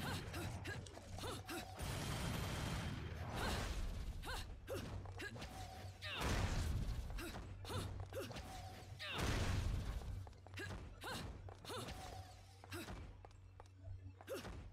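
Sharp hits and whooshing attacks sound in quick bursts.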